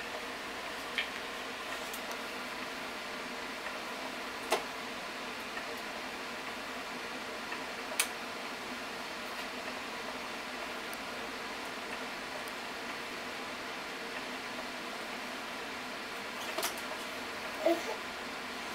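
A small child clicks buttons on a plastic toy.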